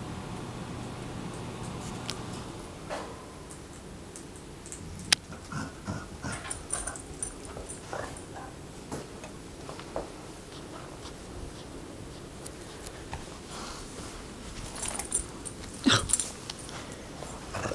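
Dogs scamper and patter across a carpeted floor.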